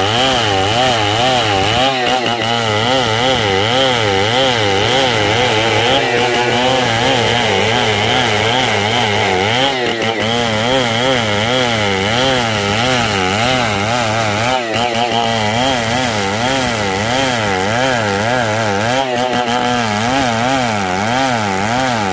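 A chainsaw engine runs under load, ripping lengthwise through a hardwood beam.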